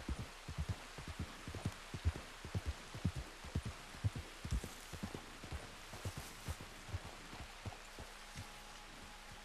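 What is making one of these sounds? A horse's hooves thud steadily on soft ground.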